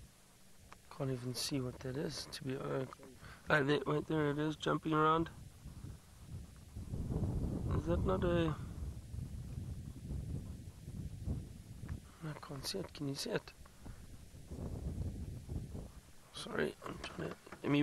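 A man speaks calmly through a headset microphone, close by.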